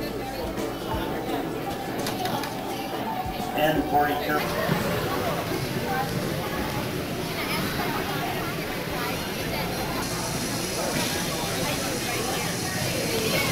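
A crowd of people chatters nearby in an echoing hall.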